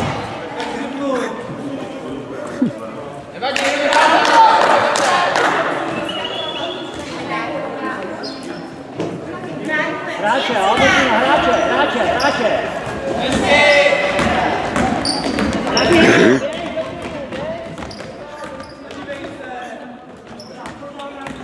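A basketball bounces on the hard floor.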